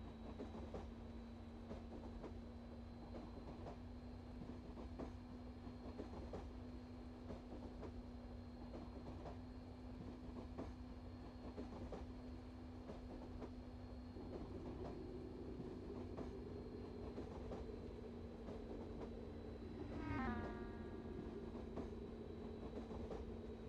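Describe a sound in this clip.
An electric high-speed train hums as it runs along the track.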